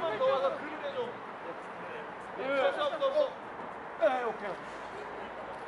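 A young man speaks briefly.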